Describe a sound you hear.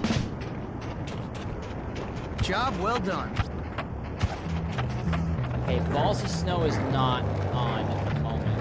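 Footsteps run quickly across hard pavement.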